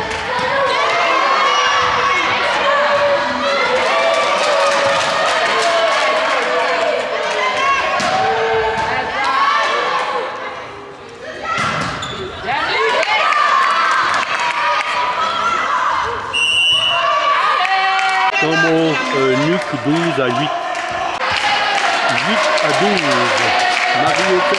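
A volleyball is struck hard in an echoing hall.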